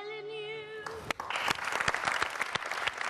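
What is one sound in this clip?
A crowd of children applauds in a large hall.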